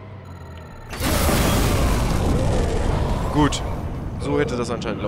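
An explosion booms with a loud, rumbling roar that goes on.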